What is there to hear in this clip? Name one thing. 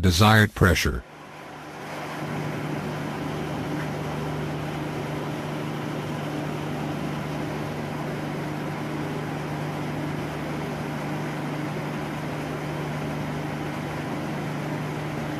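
A diesel engine runs with a steady hum.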